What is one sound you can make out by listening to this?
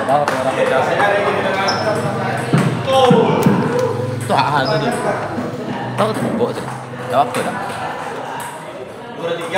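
Men talk and shout across an echoing room.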